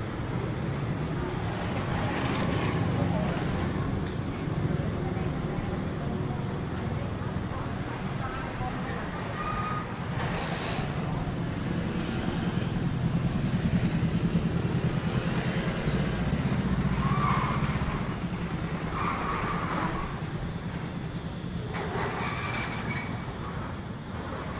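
Traffic hums steadily on a nearby street outdoors.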